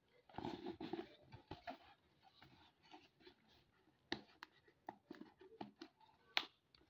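Fingers rustle and tap against a cardboard box.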